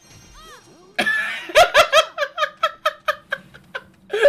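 Quick, bouncy game music notes play in a steady rhythm.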